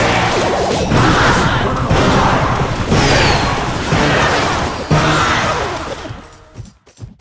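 Game battle sounds clash and thud loudly.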